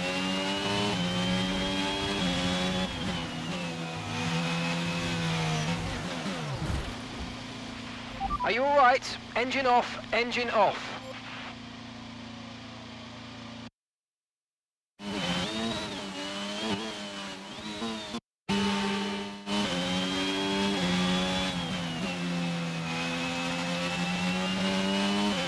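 A racing car engine screams at high revs, rising and falling with the gear changes.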